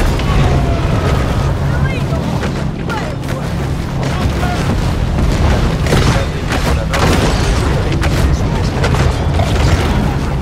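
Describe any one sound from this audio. Boat engines rumble low and steady.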